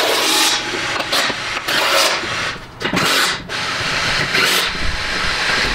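A power wrench whirs in short bursts.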